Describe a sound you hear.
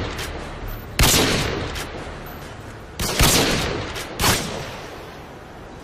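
Loud rifle shots boom and echo away.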